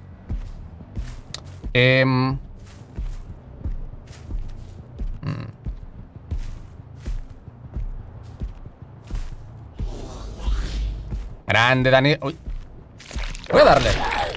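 Footsteps thud steadily on grass.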